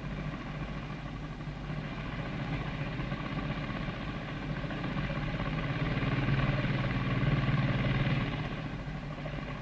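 A car engine chugs and rumbles.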